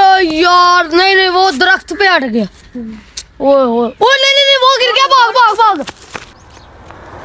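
A boy shouts loudly with animation close by.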